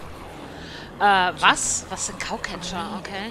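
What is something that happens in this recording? A young girl speaks hesitantly, close by.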